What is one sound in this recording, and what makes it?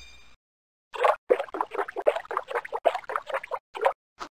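Jam squelches as a spoon stirs it in a jar.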